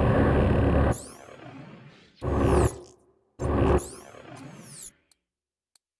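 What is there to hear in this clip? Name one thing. Electronic menu swooshes sound several times.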